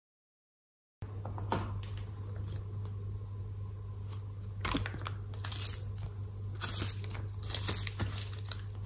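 Soft plastic crinkles and crackles as it is peeled apart by hand.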